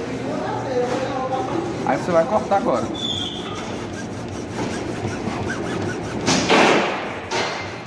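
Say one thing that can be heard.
A hacksaw cuts back and forth through a plastic pipe.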